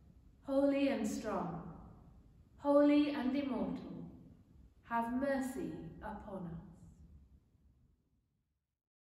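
A woman sings a slow chant into a microphone, in a room with a slight echo.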